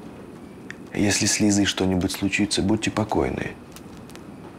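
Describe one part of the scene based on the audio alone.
A man speaks calmly and firmly nearby.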